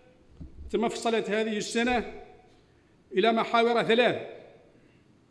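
A man speaks formally into a microphone in a room with a slight echo.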